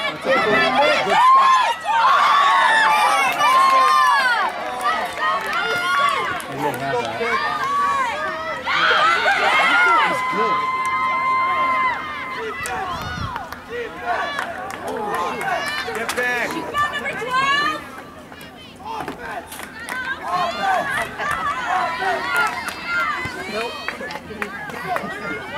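A crowd of spectators shouts and cheers nearby, outdoors.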